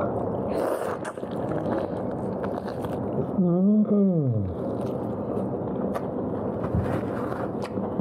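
A man chews and slurps on meat noisily.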